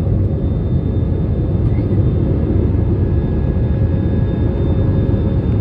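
Jet engines roar steadily with a deep, constant rumble.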